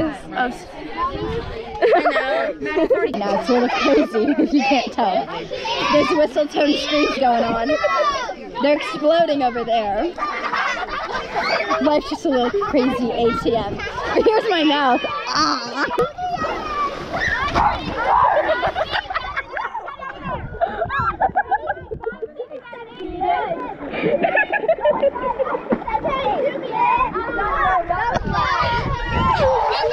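A girl talks excitedly, close by.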